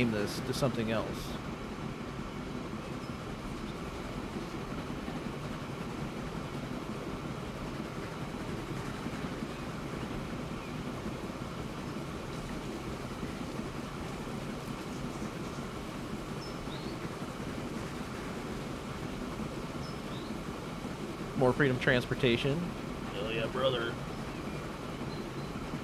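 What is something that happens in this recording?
A train rumbles steadily along a track.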